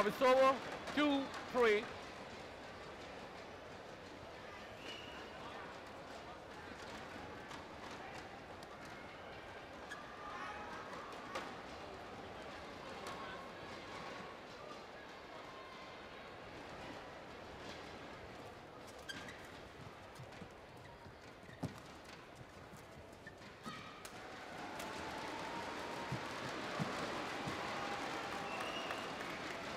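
A crowd murmurs steadily in a big echoing hall.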